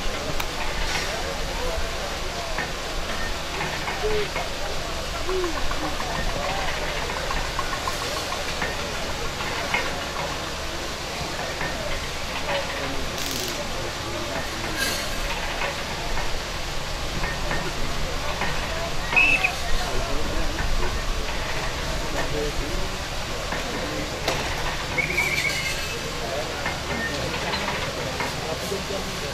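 A large outdoor crowd murmurs and chatters throughout.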